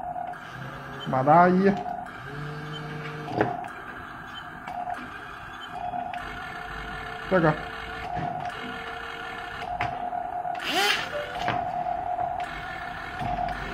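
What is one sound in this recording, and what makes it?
Small electric motors whir, speeding up and slowing down in short bursts.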